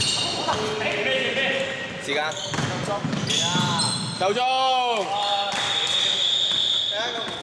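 A basketball bounces on the floor with echoing thuds.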